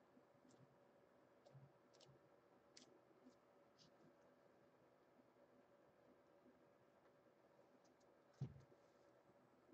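Something scrapes and taps lightly against a canvas.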